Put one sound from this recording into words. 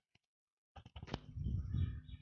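A car door latch clicks.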